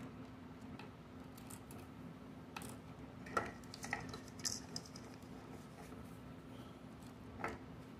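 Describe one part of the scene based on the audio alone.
Small plastic pieces click against a wooden table.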